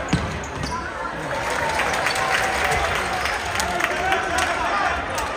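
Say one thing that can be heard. A crowd murmurs and shouts in an echoing sports hall.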